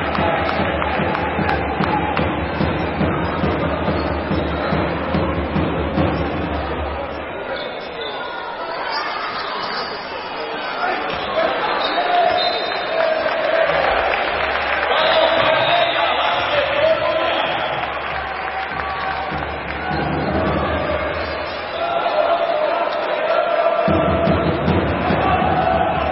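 A crowd murmurs and cheers in an echoing indoor hall.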